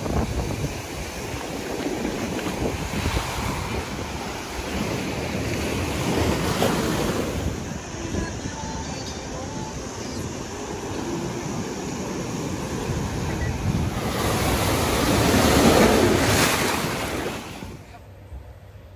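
Waves wash and break against the shore.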